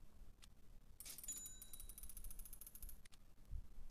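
Rapid electronic ticks clatter as a prize wheel spins, then stop.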